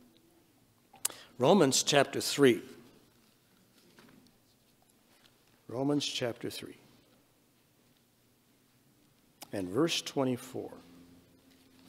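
An elderly man speaks slowly and solemnly into a microphone, in short phrases with long pauses.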